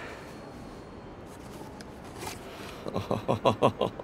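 A cardboard box flaps open.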